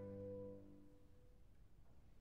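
A small chamber ensemble holds a final chord that rings out and fades in an echoing hall.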